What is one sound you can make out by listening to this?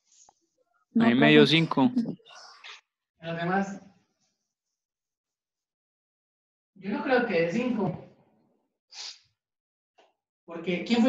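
A young man speaks calmly, explaining, close by in a room.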